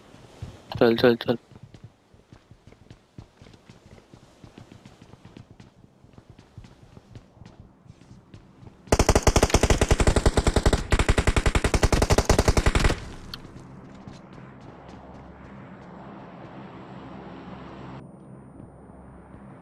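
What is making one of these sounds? Footsteps thud on wooden floors and stairs.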